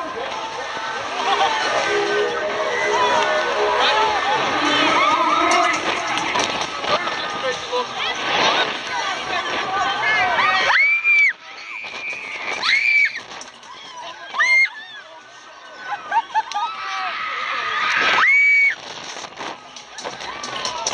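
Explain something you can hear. Young women scream loudly and excitedly on a ride.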